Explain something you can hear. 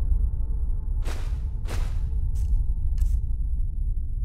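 Sharp clicks of a menu sound in quick succession.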